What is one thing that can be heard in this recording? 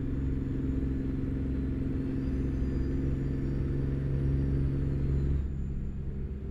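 A truck engine rumbles steadily at a low pitch, then drops in tone near the end.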